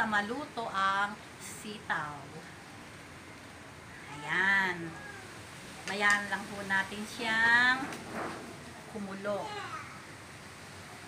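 A middle-aged woman talks with animation close by.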